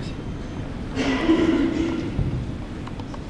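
A crowd of onlookers murmurs quietly nearby.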